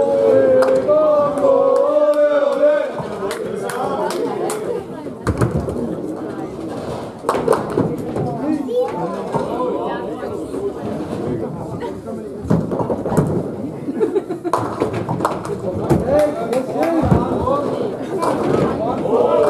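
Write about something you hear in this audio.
Pins clatter as a ball knocks them down.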